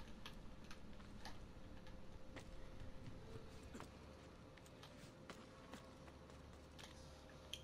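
Footsteps and hands knock on wood and stone as a climber scrambles and lands.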